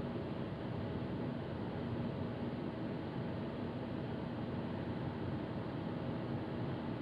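A car engine hums steadily while driving at speed.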